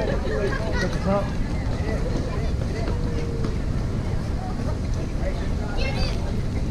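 Men and women chatter casually nearby, outdoors.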